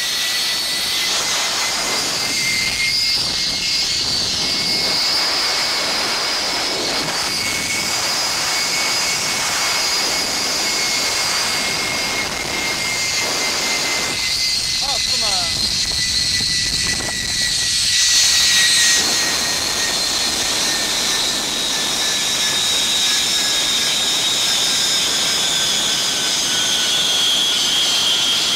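A zipline pulley whines steadily along a cable, its pitch slowly falling.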